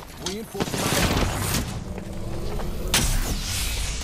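A shield recharger whirs and hums as it charges.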